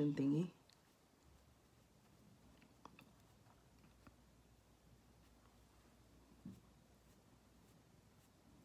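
A makeup sponge pats softly against skin.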